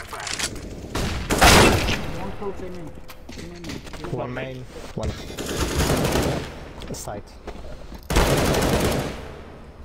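A rifle fires in sharp rapid bursts.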